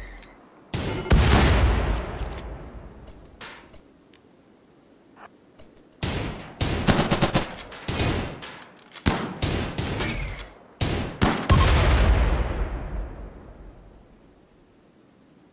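Explosions boom and rumble away.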